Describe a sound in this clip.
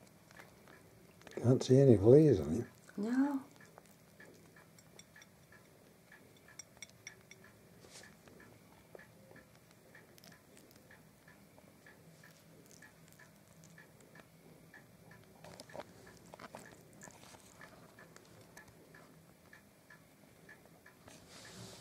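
A hedgehog's claws click softly on a china plate.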